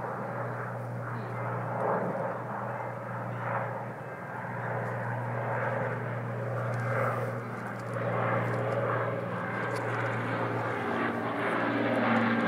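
A crowd of people murmurs nearby outdoors.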